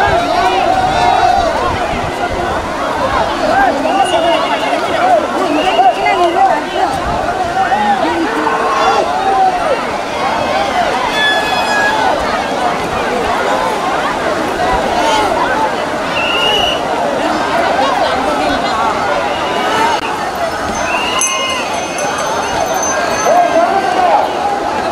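A large crowd of men and women chatters and calls out loudly outdoors.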